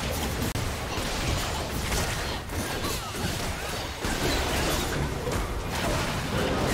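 Magic blasts crackle and boom in a busy video game battle.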